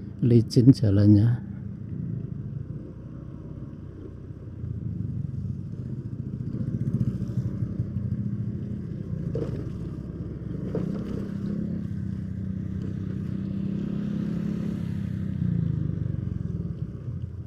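Tyres roll over a rough dirt road.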